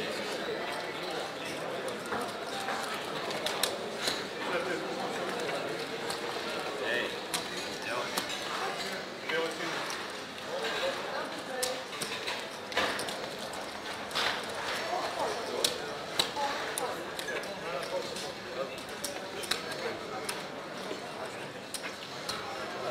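Casino chips click and clatter as they are stacked and moved.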